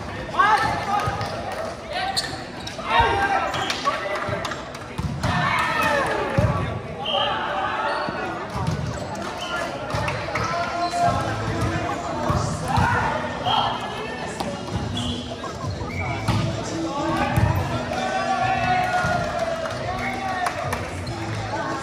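Young men talk and call out nearby in a large echoing hall.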